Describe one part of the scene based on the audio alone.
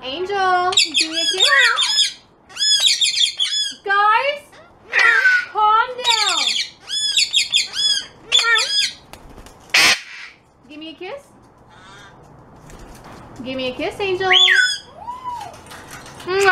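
A parrot squawks and chatters loudly close by.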